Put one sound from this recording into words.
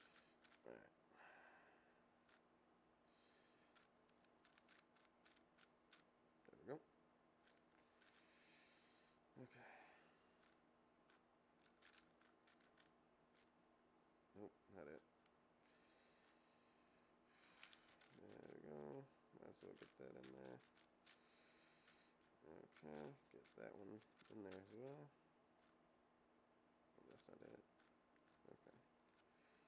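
A young man speaks now and then, close to a microphone.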